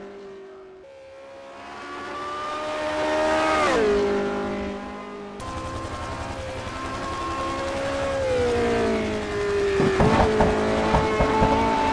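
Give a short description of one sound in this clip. A racing car engine roars, rising and falling in pitch as the car approaches, shifts gears and passes.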